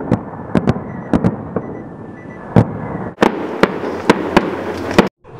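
Fireworks bang and crackle loudly outdoors.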